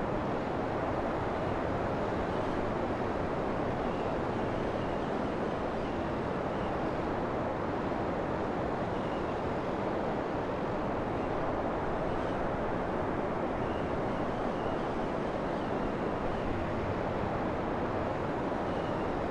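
A helicopter's rotor and engine roar steadily.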